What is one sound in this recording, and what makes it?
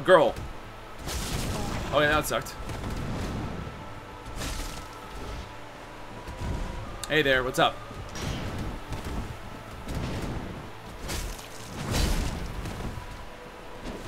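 Heavy paws thud on the ground.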